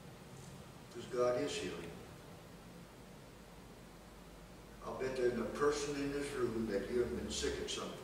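An elderly man speaks slowly into a microphone in a room with a slight echo.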